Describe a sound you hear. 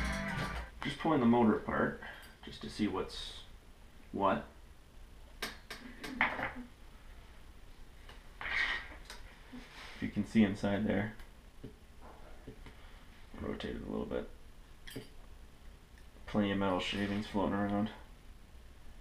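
A young man talks calmly close by, in short bursts.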